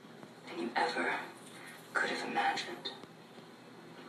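A woman speaks softly through a television speaker.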